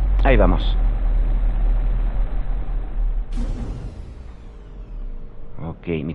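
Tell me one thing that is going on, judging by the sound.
A spaceship engine rumbles loudly as it descends.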